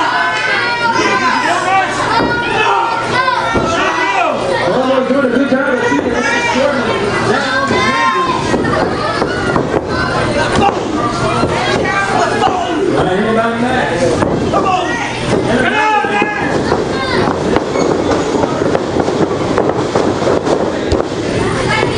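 A crowd shouts and cheers close by in an echoing room.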